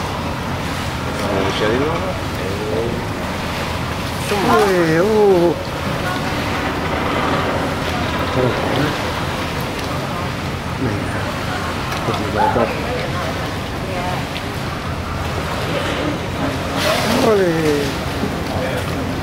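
Water splashes and laps as a whale pushes a ball.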